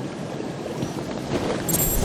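A mechanical grappling claw fires with a metallic snap.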